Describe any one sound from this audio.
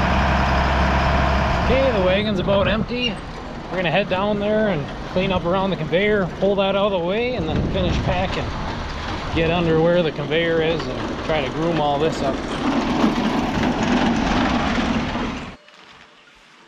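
A tractor engine rumbles.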